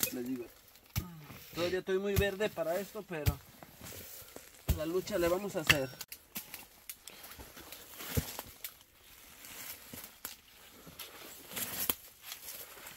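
Pruning shears snip through roots with sharp clicks.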